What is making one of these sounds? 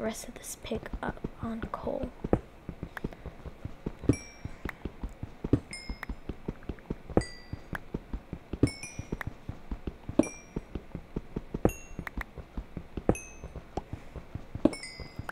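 A pickaxe chips at stone with quick, steady taps.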